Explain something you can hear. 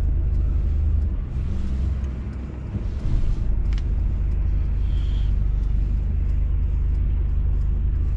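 Cars drive past close by.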